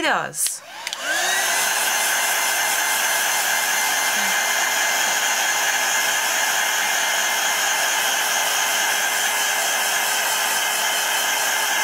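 A heat gun blows with a steady, whirring roar.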